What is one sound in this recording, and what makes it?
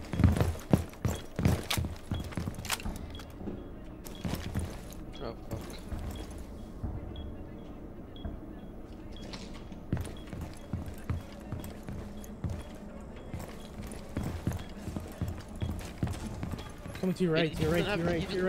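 Footsteps thud steadily across a hard floor.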